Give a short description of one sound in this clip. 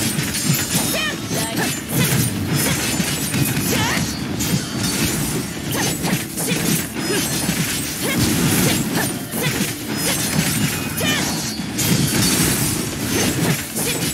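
Blades slash and clang in rapid, nonstop hits.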